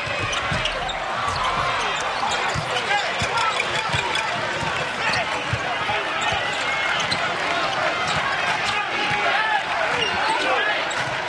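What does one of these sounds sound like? A large indoor crowd murmurs in an echoing arena.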